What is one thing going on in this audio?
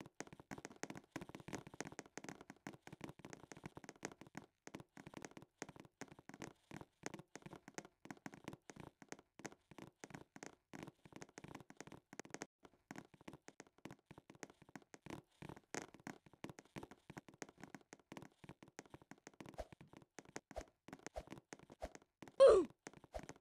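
Quick light footsteps patter across a metal floor.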